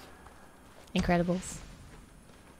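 A young woman speaks briefly and brightly into a close microphone.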